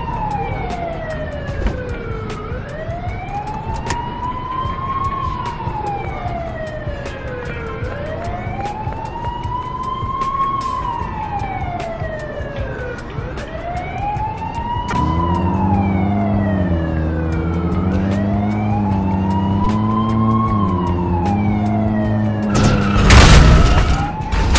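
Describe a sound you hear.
A siren wails up and down steadily.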